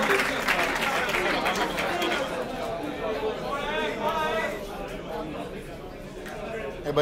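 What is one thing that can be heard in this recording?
A crowd murmurs and cheers loudly.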